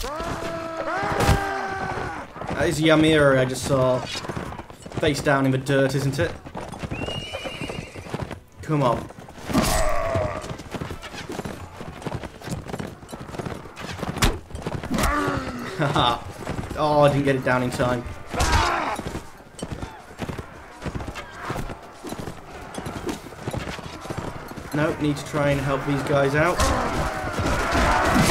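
Horse hooves pound over the ground.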